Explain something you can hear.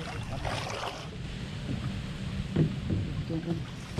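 A plastic crate splashes into water.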